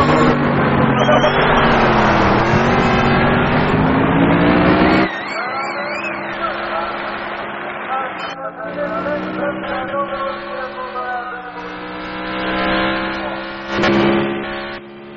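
A racing car engine roars and whines as it revs up and down.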